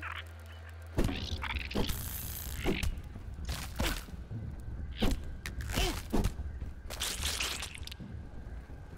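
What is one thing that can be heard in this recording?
Heavy blows thud and squelch as a weapon strikes giant ants.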